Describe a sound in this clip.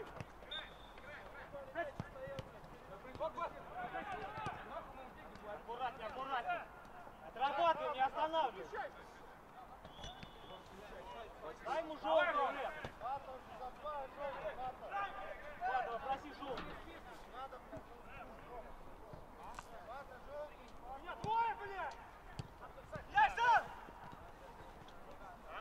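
A football thuds when a player kicks it.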